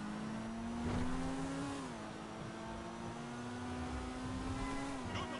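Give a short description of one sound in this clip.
A car engine revs steadily, with its pitch rising and then dropping as gears shift.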